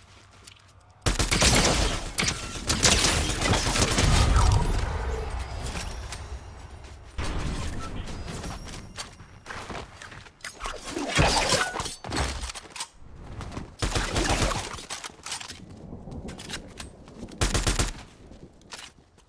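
Rifle shots crack in bursts.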